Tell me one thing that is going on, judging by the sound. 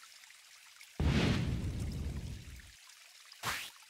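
A magical spell effect swells with a deep rumble.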